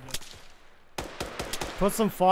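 A rifle fires a single loud shot.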